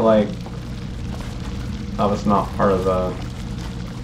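Liquid gushes and splashes from a pipe.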